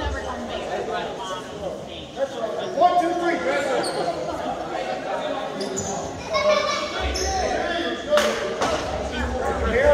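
Boys and men talk and call out in a large echoing gym.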